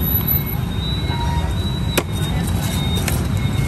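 A foam food box snaps shut with a click.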